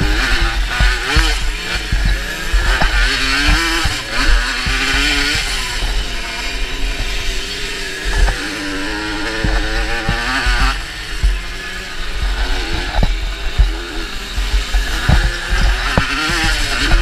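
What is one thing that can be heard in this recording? Tyres crunch and thump over loose dirt.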